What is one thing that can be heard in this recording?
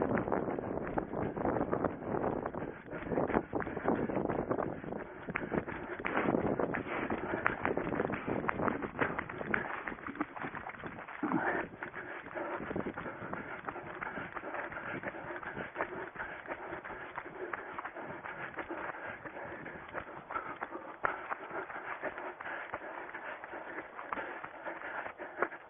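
Footsteps pound quickly through grass as a runner jogs.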